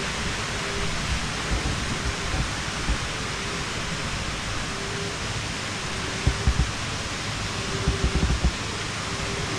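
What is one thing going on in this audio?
A child's footsteps thump on a wooden deck.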